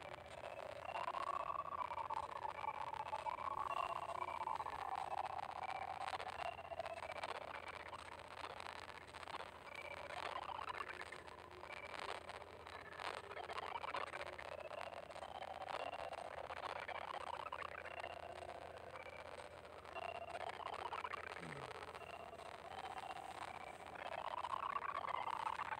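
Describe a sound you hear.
Cheerful electronic game music plays steadily.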